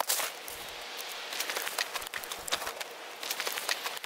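Gear rustles and clicks as items are handled.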